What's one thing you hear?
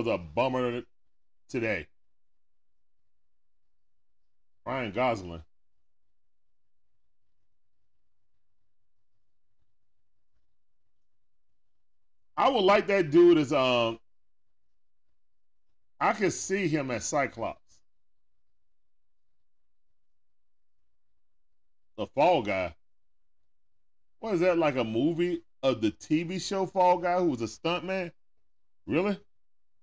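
A man speaks casually into a close microphone, in short bursts with pauses.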